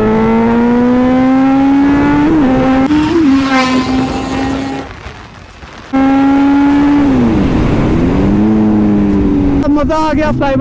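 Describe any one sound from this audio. A motorcycle engine hums steadily and rises in pitch as it speeds up.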